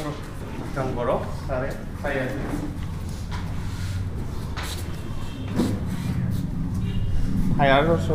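A young man talks nearby in short bursts.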